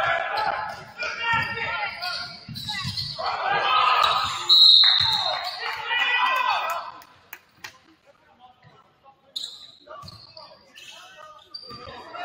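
A basketball bounces on the court floor.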